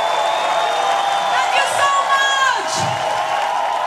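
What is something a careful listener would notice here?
A woman sings through loudspeakers.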